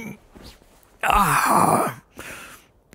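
An old man screams loudly, close up.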